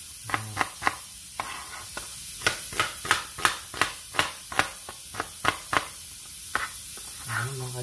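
A knife chops quickly on a plastic cutting board.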